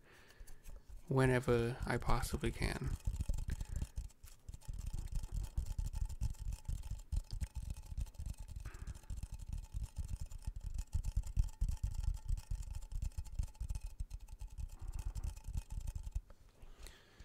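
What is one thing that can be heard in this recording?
A plastic object is squeezed and rubbed in rapid crinkling bursts close to a microphone.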